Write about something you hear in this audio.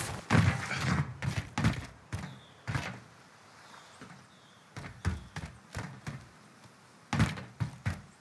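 Footsteps clatter on a metal deck.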